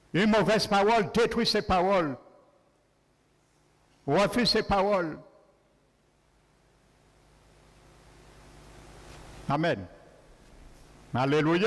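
A man speaks with animation through a microphone, pausing between phrases.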